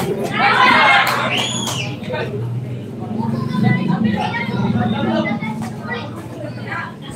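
Boxing gloves thump during sparring.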